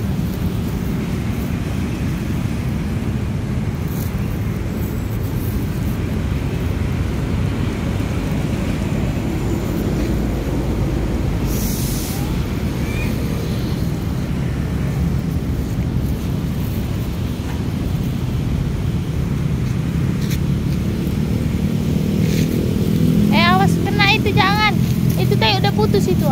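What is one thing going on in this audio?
Wind blusters steadily across the microphone outdoors.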